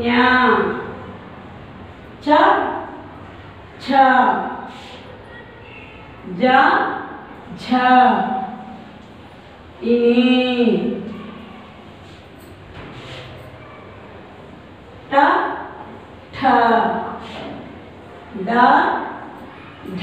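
A woman speaks slowly and clearly, in short phrases with pauses.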